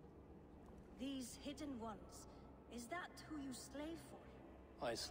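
A woman speaks calmly and coldly.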